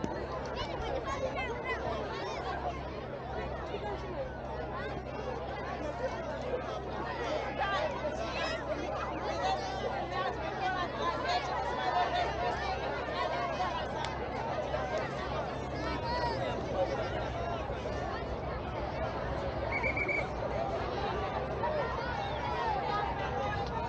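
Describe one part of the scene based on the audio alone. A crowd of people chatters outdoors in the distance.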